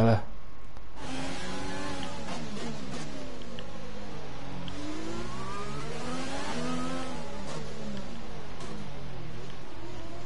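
A racing car engine whines, rising and falling in pitch as it revs and shifts gears.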